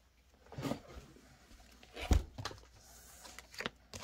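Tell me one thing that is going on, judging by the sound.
Paper bills rustle as they are handled.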